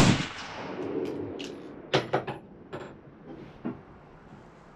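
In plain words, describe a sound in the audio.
A rifle's bolt clicks and clacks as it is worked.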